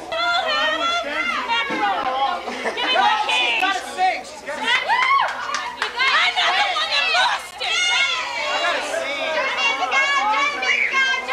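A crowd of women and men sing loudly together close by.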